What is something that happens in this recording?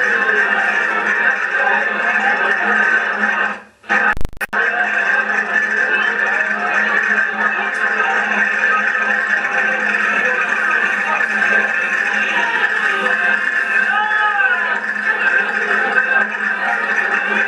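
An accordion plays a lively dance tune in a large echoing hall.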